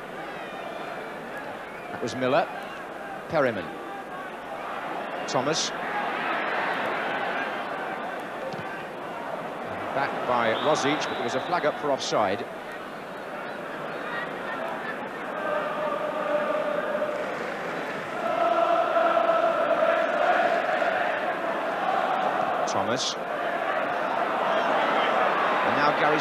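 A large stadium crowd roars and murmurs throughout.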